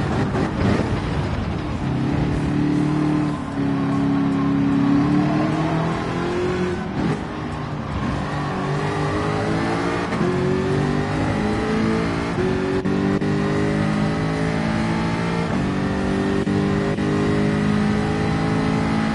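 A racing car engine roars loudly, revving up and shifting through gears.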